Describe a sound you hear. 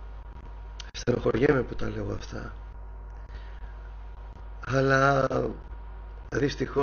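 A man speaks calmly in short phrases, heard through a microphone over an online call.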